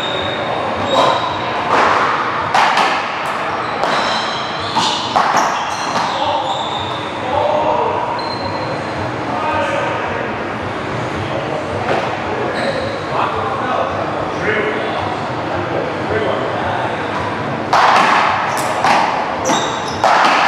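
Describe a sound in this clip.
Rackets smack a ball hard in a large echoing hall.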